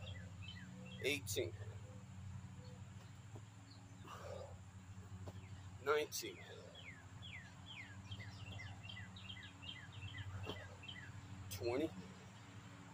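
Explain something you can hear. Feet thump on grass as a man jumps and lands.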